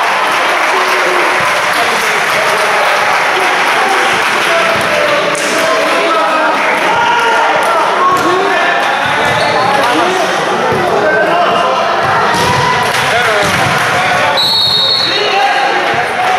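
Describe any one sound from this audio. Spectators chatter in a steady murmur.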